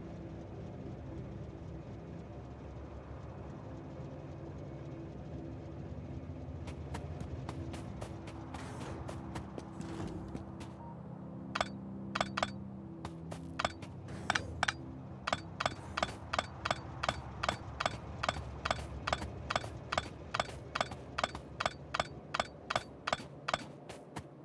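Machines hum and whir steadily.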